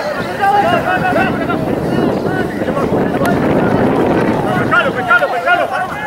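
A crowd cheers and roars from the stands outdoors.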